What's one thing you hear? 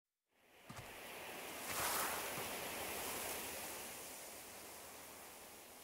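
Wind blows and rustles through tall grass.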